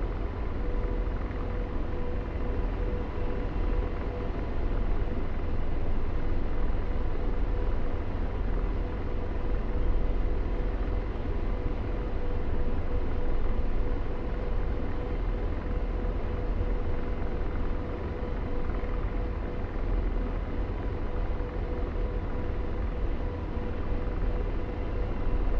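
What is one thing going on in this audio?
A helicopter's engine drones steadily with a low rotor rumble and a faint whine.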